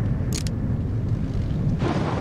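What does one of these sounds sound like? A fire crackles and burns.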